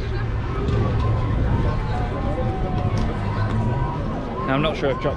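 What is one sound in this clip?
A crowd chatters outdoors.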